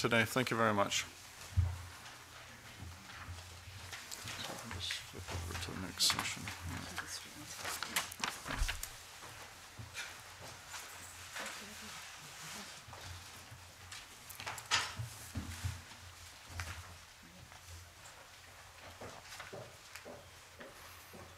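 Papers rustle and chairs knock.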